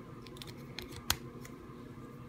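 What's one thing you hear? A plastic toy figure clicks down onto a hard surface.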